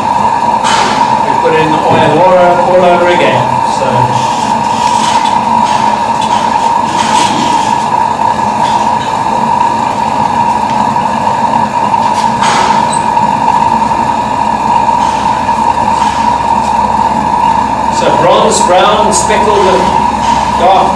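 A grinding wheel whines steadily.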